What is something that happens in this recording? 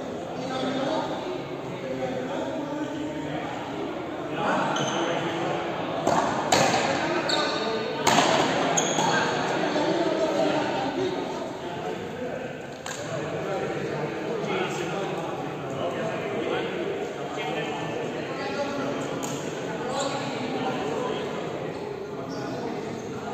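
A ball cracks off frontenis rackets and smacks against a wall in a large echoing hall.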